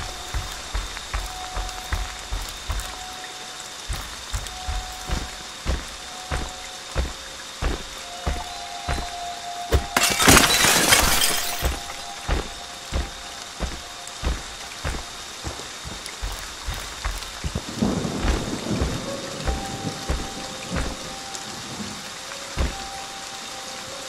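Heavy footsteps thud on the ground at a steady walking pace.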